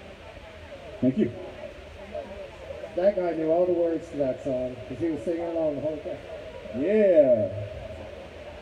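A woman speaks into a microphone through loudspeakers outdoors.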